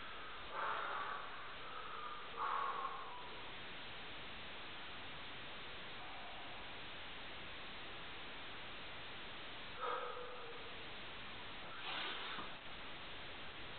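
A man grunts and breathes hard with effort close by.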